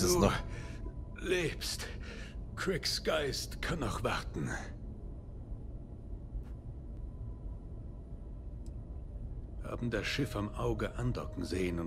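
A man speaks in a low, weary voice close to the microphone.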